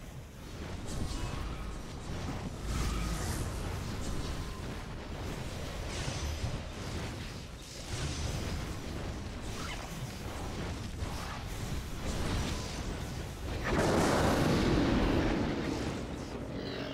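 Lightning spells crackle and boom amid a battle.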